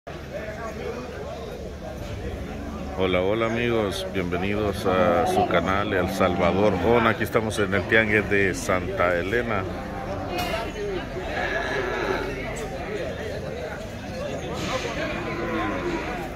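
A crowd of men chatters in the background outdoors.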